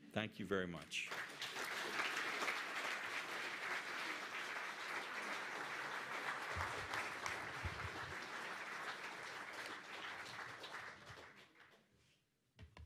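An audience applauds steadily, then the clapping dies away.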